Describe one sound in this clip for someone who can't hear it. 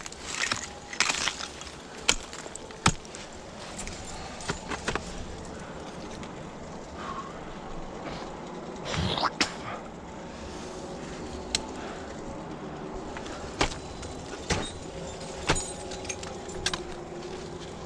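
Ice axes strike and chip into hard ice with sharp thuds.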